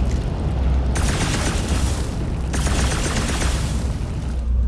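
A fire roars and crackles with bursting sparks.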